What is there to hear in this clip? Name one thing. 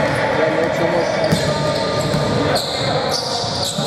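A basketball bounces on a wooden floor with hollow thuds.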